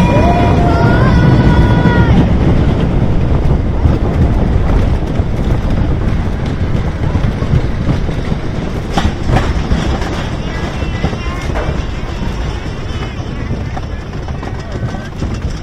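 A roller coaster car rumbles and rattles loudly along a wooden track.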